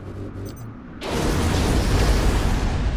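Heavy gunfire and explosions roar in a loud battle.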